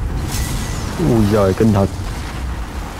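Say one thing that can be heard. A dragon lets out a deep, rising roar.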